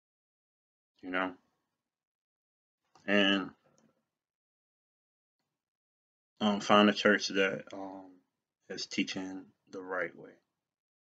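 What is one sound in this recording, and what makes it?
A man speaks calmly and close, in short bursts with pauses.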